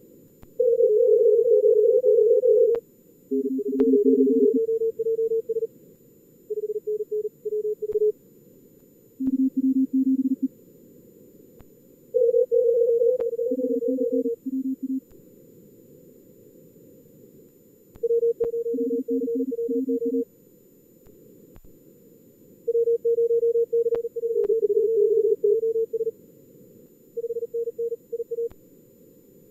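Morse code beeps in quick bursts of steady tones at two different pitches, with pauses between them.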